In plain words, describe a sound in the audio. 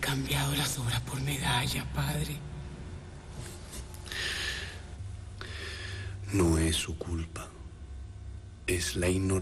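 A middle-aged man speaks quietly and tensely, close by.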